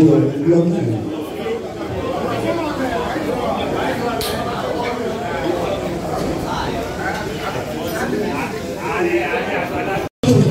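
Several women chatter and talk over one another nearby.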